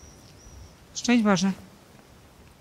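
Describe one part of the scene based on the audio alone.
A young woman speaks briefly and calmly nearby.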